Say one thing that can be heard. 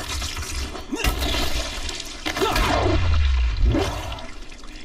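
A heavy club thuds into bodies again and again.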